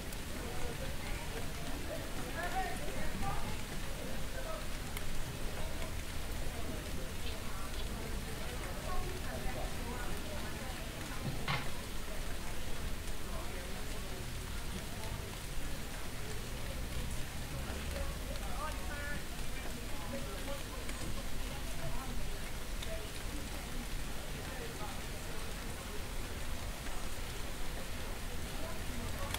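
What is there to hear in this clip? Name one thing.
People talk outdoors at a distance.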